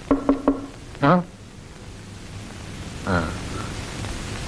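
A woman groans and moans in pain close by.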